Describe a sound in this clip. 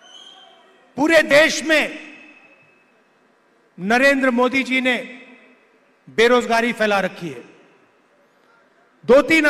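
A middle-aged man speaks forcefully into a microphone over loudspeakers, in short bursts with echoing pauses.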